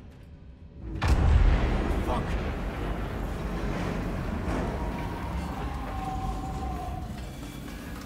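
A heavy metal valve wheel grinds and creaks as it turns.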